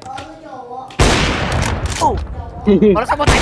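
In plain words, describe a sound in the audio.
A sniper rifle fires a single loud, booming shot.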